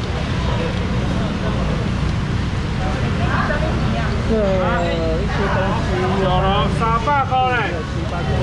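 People talk in a busy crowd nearby.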